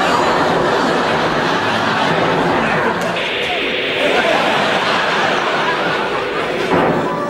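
A television hisses loudly with static.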